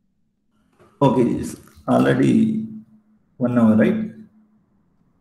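A young man speaks calmly into a microphone, heard as if over an online call.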